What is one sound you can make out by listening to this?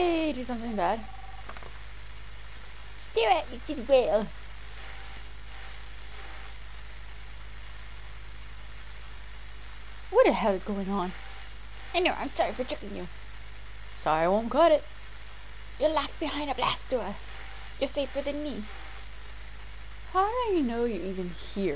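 A young woman talks into a headset microphone, reading out with animation in bursts.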